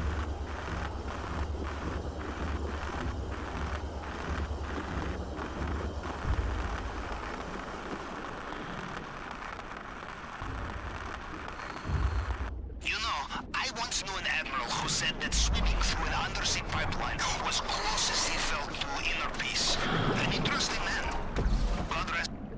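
Air bubbles gurgle underwater.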